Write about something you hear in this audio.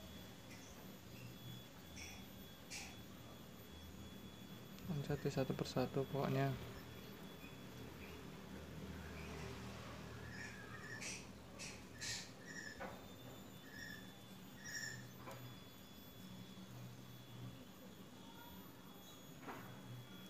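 Rope rustles softly as hands tie a knot.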